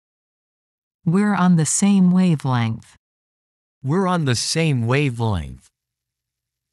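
A man speaks slowly and clearly, close to a microphone.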